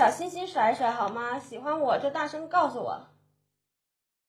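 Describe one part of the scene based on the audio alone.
A young woman talks brightly and quickly into a close microphone.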